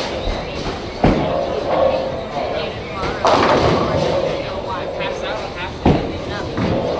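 A heavy ball rumbles down a wooden lane.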